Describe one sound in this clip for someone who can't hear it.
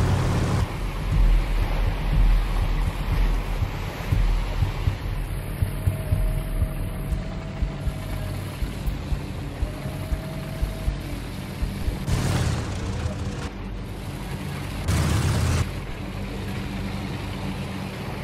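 Water splashes and churns around a moving tank.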